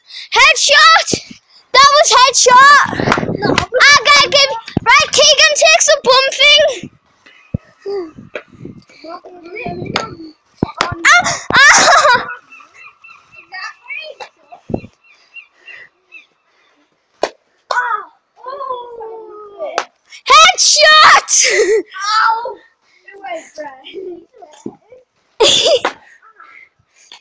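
Young boys shout and scream excitedly close by.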